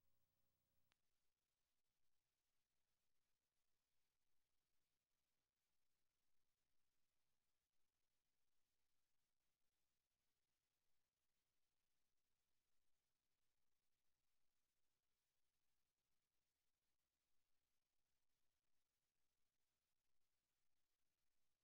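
A television hisses with static.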